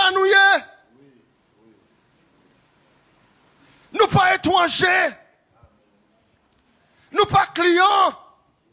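A man preaches loudly and with passion into a microphone, heard through loudspeakers in an echoing room.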